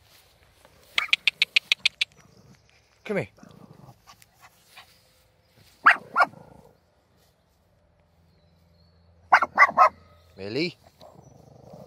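A small dog barks sharply in short bursts nearby.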